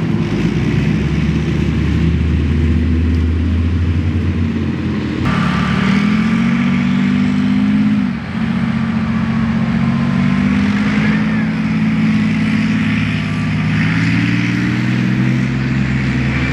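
Tank tracks clank and squeal as a tank drives over the ground.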